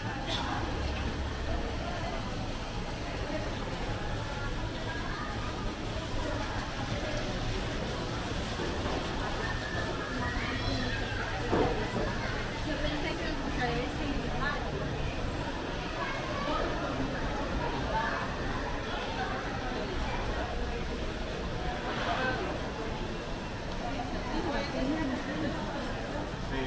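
Footsteps tap on a hard floor nearby.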